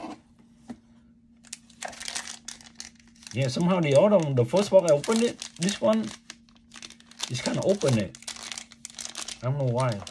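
A cardboard box lid slides and scrapes.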